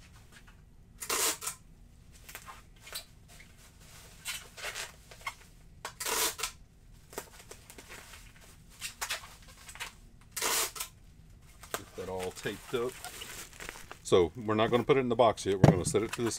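Paper and packaging rustle and crinkle as a man handles them.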